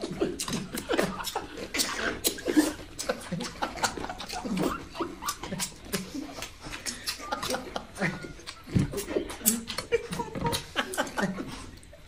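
A man chews food noisily.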